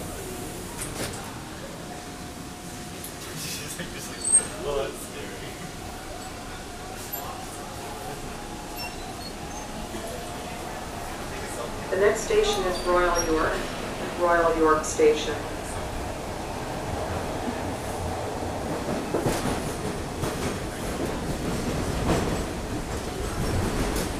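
A subway train rumbles and rattles along the tracks.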